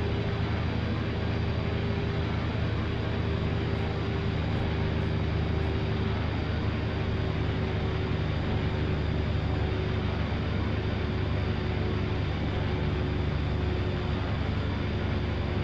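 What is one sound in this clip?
A helicopter engine and rotor drone steadily and loudly.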